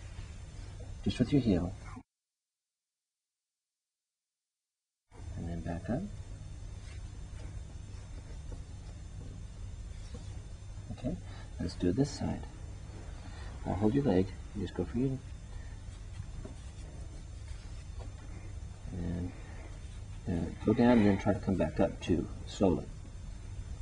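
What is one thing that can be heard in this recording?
A man speaks calmly nearby, in short phrases.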